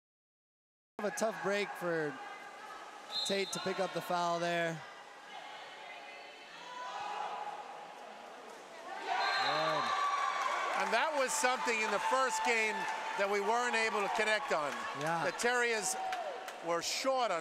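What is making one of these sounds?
Water splashes as swimmers thrash in a pool.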